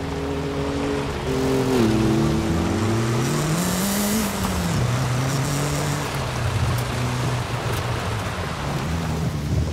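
Tyres crunch and hiss over loose gravel.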